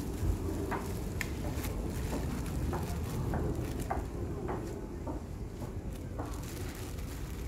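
Hands toss and rustle salad leaves in a bowl.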